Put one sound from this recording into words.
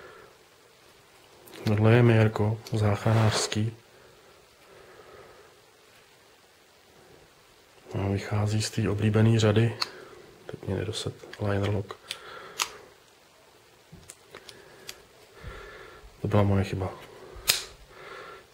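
A folding knife blade snaps open and shut with sharp clicks.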